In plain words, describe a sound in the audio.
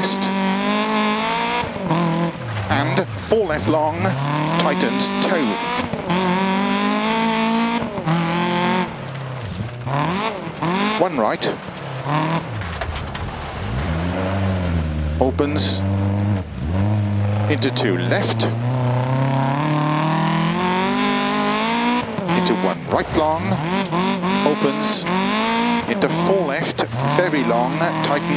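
Gravel sprays and crunches under skidding tyres.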